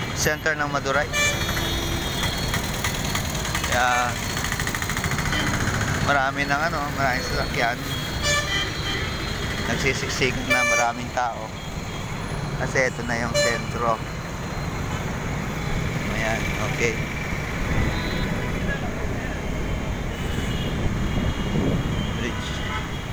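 Traffic hums and roars along a busy road outdoors.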